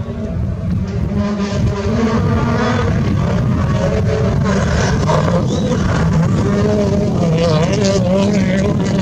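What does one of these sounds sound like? A rally car engine roars loudly, revving up and down as it approaches and speeds past.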